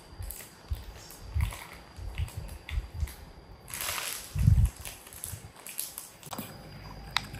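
A plastic snack bag crinkles and rustles as it is handled.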